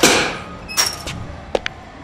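A baseball bat swishes through the air.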